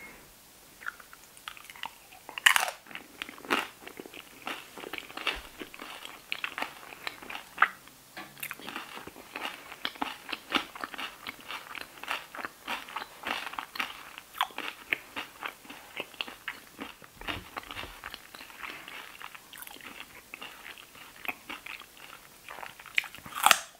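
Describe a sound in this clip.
A woman crunches loudly on crispy food close to a microphone.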